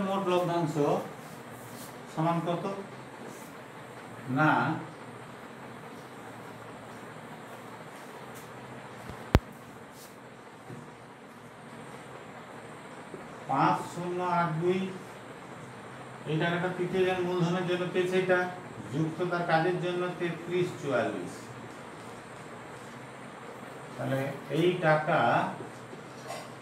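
A man speaks calmly and slowly nearby, explaining in short bursts with pauses.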